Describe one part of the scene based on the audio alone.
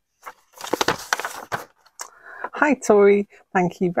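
Paper rustles as a sheet is unfolded.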